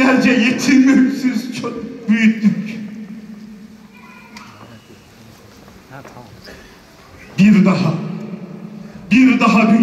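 An elderly man speaks through a microphone and loudspeakers in a large echoing hall, reciting with feeling.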